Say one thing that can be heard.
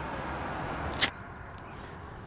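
A lighter clicks and flicks.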